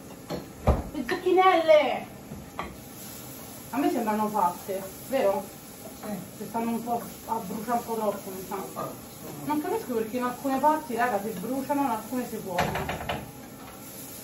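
A woman talks with animation close by.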